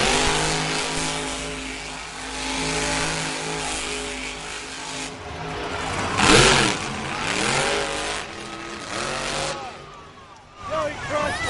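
A monster truck engine roars loudly and revs.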